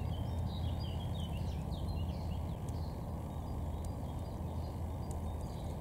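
A small bird splashes as it bathes in shallow water.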